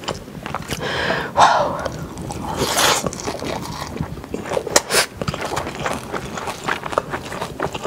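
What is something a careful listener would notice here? A young woman chews and smacks food close to a microphone.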